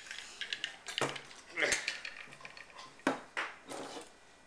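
Metal and glass shaker parts clink and knock together.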